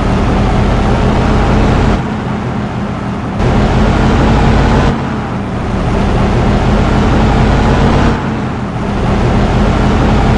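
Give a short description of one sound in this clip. A bus engine drones steadily with a low hum.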